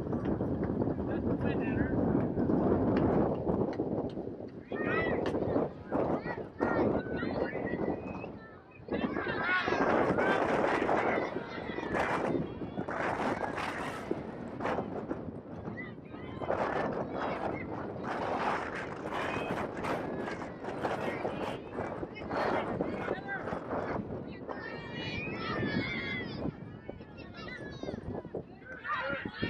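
A small crowd of spectators shouts and cheers outdoors.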